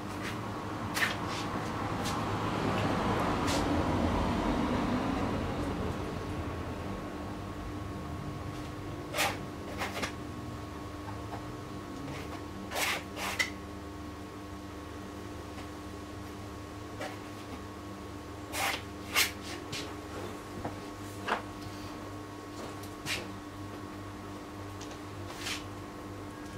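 A brush taps and clicks against a palette.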